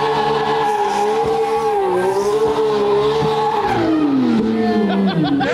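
Tyres screech as they spin on pavement.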